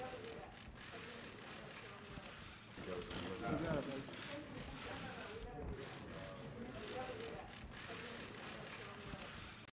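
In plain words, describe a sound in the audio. Men talk quietly nearby.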